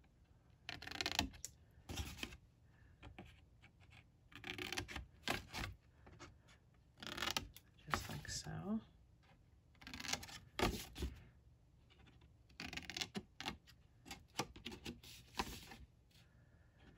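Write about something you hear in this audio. Scissors snip through thin paper in short bursts.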